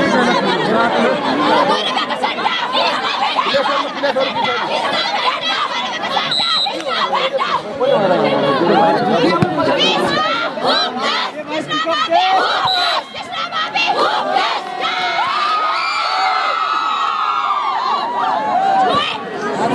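A large crowd outdoors cheers and shouts throughout.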